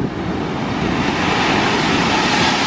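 A big wave bursts into spray against rocks.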